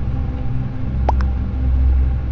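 A short chime sounds as a chat message arrives.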